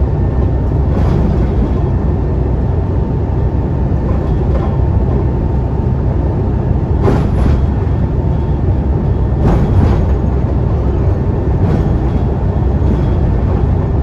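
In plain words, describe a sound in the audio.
The bus body rattles and clunks over bumps in the road.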